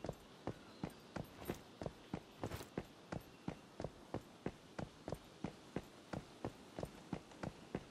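Quick footsteps run steadily on a paved road.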